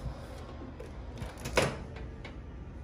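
A microwave button clicks.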